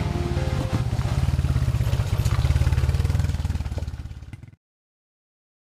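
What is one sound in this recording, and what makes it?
A dirt bike engine revs loudly close by, then fades away.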